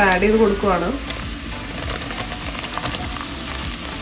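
Sliced onions drop into hot oil.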